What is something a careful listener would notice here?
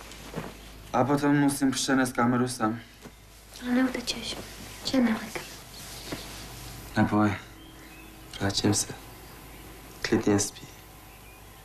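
A young man speaks softly nearby.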